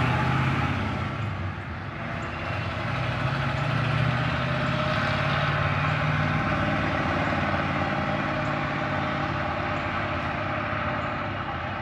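A freight train rumbles steadily past, wheels clattering on the rails.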